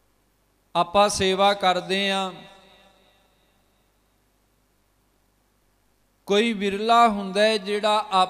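A man sings through a microphone in long, drawn-out phrases with a pause between them.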